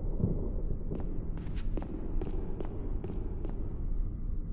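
Footsteps click across a hard floor in an echoing hall.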